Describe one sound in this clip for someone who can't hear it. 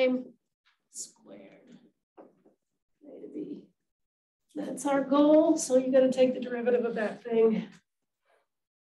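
A woman lectures calmly, heard close through a microphone.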